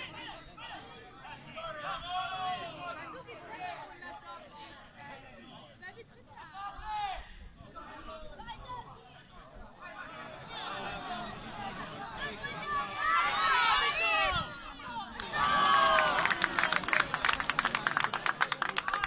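Young men shout to each other far off on an open outdoor pitch.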